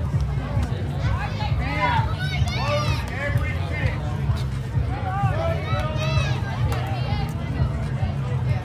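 Young children shout and call out across an open field.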